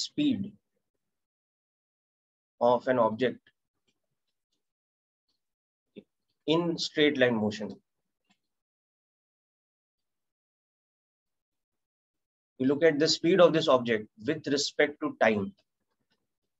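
A man speaks calmly through a microphone, explaining in short phrases with pauses.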